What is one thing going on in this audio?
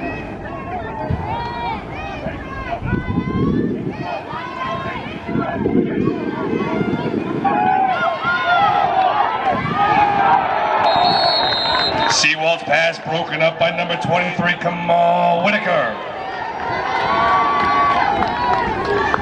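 A crowd of spectators cheers and talks outdoors.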